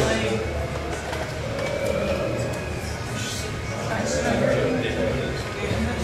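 Several adults talk at once in a busy, echoing room.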